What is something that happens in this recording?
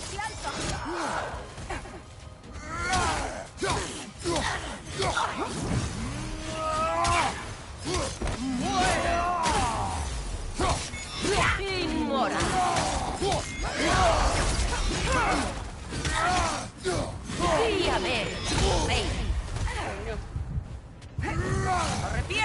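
Heavy weapons clash and thud in a fast fight.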